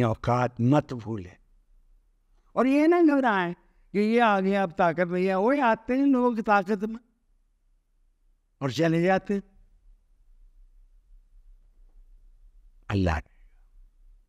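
A middle-aged man speaks with animation close to a microphone, in bursts with pauses.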